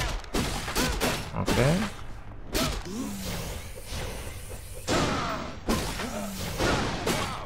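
Blades swish and clang in quick slashing strikes.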